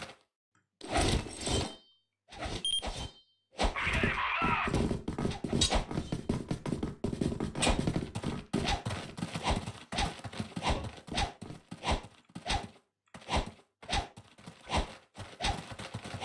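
Metal blades swish and clink as weapons are spun in the hands.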